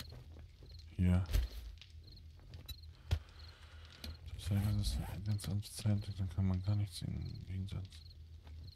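A middle-aged man talks casually into a close microphone.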